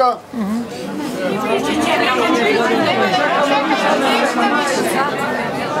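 A crowd of people murmurs and talks in the background.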